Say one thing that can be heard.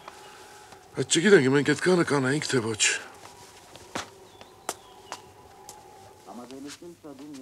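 An elderly man speaks loudly and with agitation nearby.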